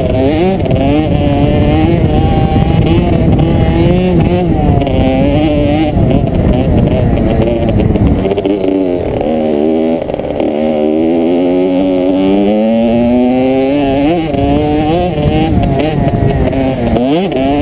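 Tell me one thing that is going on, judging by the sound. A motocross bike engine revs loudly up and down close by.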